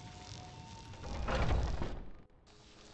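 A heavy wooden door swings open with a rumble.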